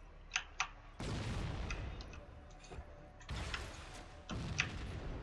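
Heavy gunfire roars in loud bursts.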